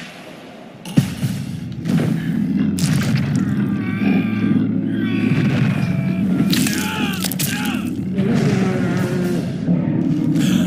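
A bear growls and snarls up close.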